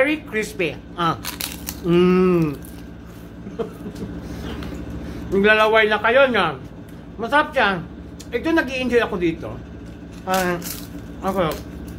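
A man crunches on a crispy cracker.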